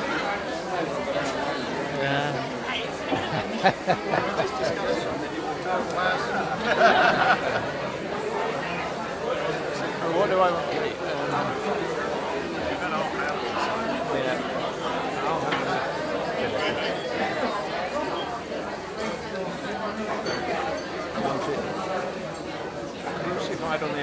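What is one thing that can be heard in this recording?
Many people chatter in the background.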